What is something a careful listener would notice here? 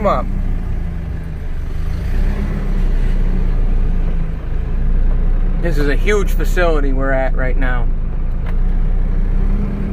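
A car engine hums steadily, heard from inside the cabin.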